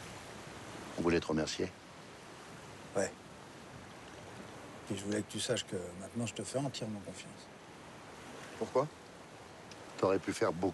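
A middle-aged man talks nearby.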